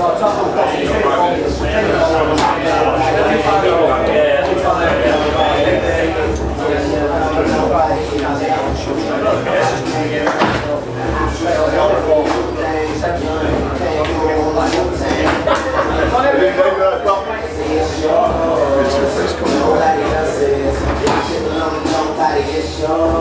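Many men talk and chatter at once in an echoing corridor.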